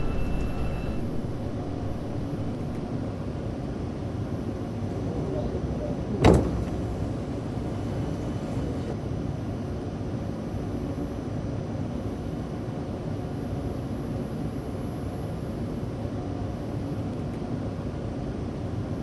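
A subway train rumbles steadily along the tracks, heard from inside the car.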